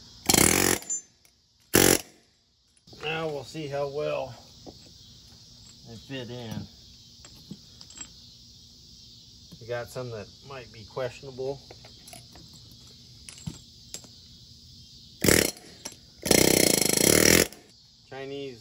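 An air impact wrench whirs in short bursts.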